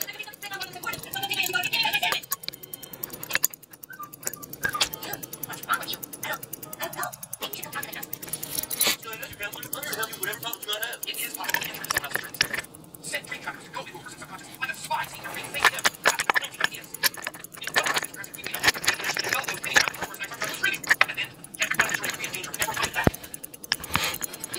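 Fingers handle small metal parts with soft clicks and rubbing close up.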